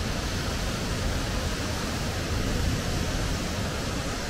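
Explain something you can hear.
Water pours steadily from a bridge into a river below.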